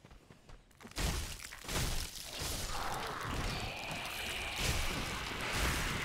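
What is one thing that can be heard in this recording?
Swords clash and slash in a loud fight.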